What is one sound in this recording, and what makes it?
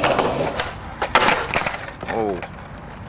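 A skateboard clatters and slams onto pavement.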